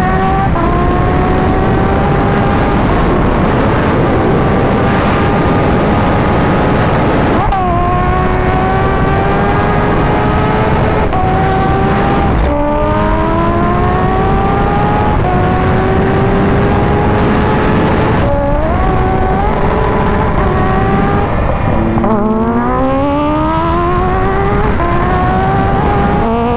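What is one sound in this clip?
Wind rushes hard past the rider at high speed.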